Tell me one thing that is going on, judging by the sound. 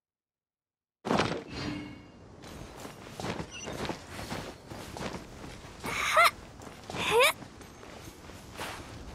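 Scuffing footsteps climb over rock with rustling noise.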